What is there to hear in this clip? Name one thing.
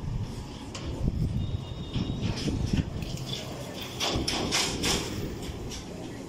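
Bicycles rattle across a metal grate.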